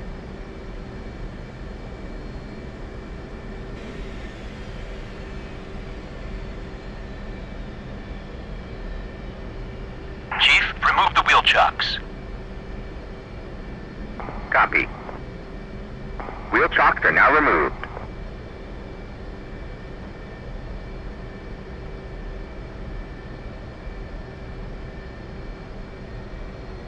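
A jet engine idles with a steady low hum.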